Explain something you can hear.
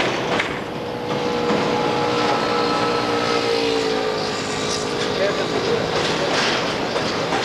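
A train horn sounds in long blasts.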